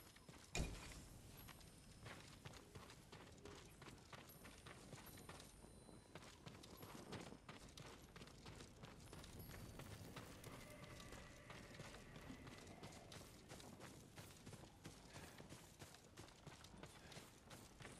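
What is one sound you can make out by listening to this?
Footsteps crunch steadily on dirt and grass.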